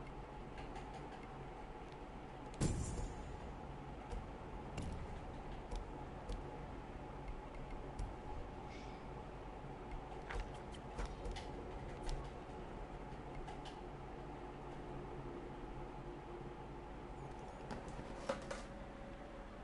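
Short menu clicks and chimes sound now and then.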